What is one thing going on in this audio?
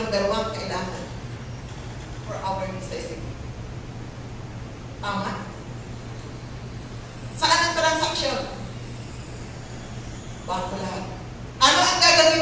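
A woman speaks with animation through a microphone and loudspeakers, in bursts with pauses.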